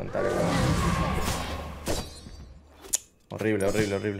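Game sound effects clash and whoosh.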